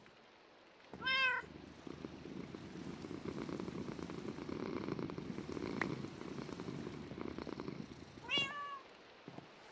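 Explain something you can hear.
A cat meows.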